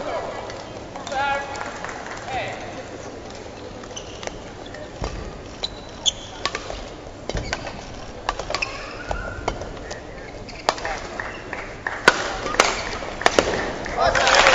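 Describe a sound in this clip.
A badminton racket strikes a shuttlecock in a large indoor arena.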